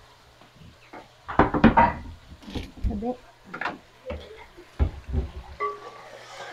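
Pots and pans clatter in a cupboard.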